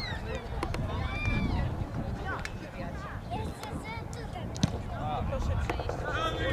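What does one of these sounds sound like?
Footballers call out to each other from across an open field.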